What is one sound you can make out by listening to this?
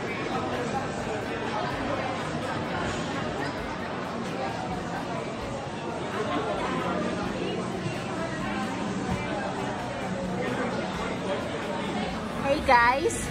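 A crowd murmurs in a large, echoing indoor hall.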